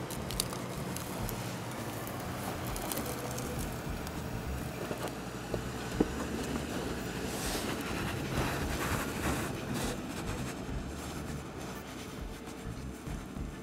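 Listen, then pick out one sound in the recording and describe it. An engine rumbles low and steady as an off-road vehicle crawls slowly.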